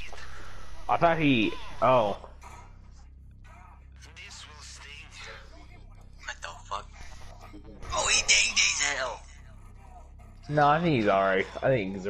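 A man speaks with alarm close by.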